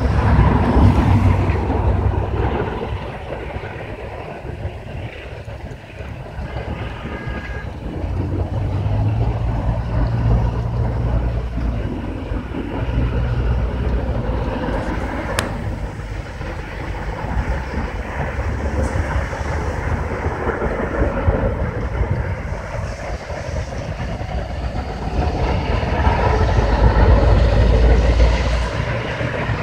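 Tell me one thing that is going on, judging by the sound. A large fire roars and crackles outdoors.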